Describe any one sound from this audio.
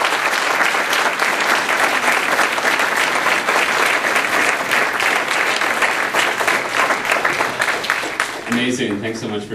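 An audience applauds loudly in a large room.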